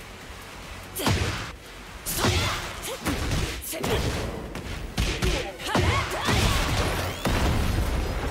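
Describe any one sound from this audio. Heavy punches and kicks land with loud thuds and cracks.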